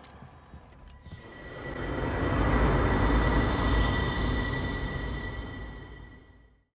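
A deep whooshing swell with a steady ringing tone rises and then fades away.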